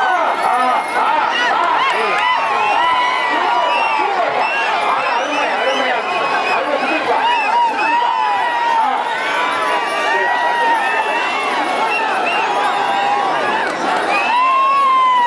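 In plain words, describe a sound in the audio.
Many men whistle shrilly.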